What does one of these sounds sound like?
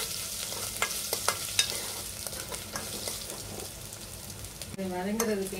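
Oil sizzles and crackles in a hot pot.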